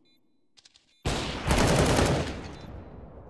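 A submachine gun fires in a video game.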